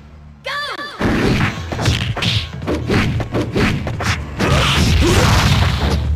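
Punches and kicks land with sharp, quick smacks.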